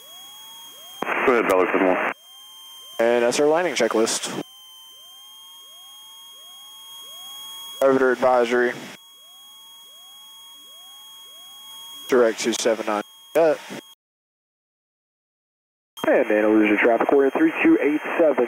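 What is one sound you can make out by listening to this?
A young man speaks calmly through a headset microphone over an aircraft intercom.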